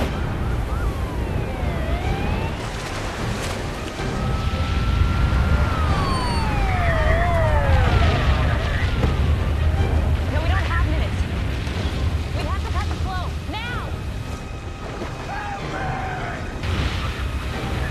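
Water roars and rushes heavily.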